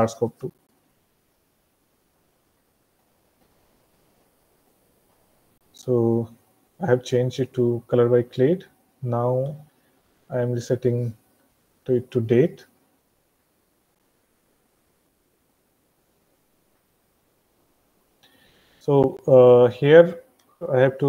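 A man speaks calmly through an online call, in short phrases with pauses.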